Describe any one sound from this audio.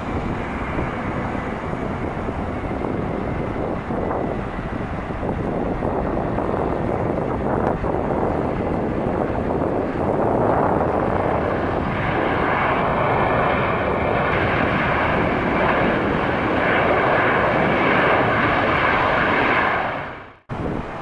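A jet airliner's engines roar loudly as it lands and rolls along a runway.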